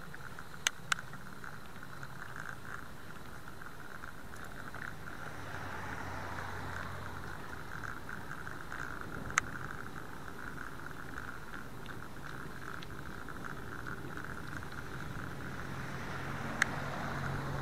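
A bicycle rattles with sharp clicks now and then.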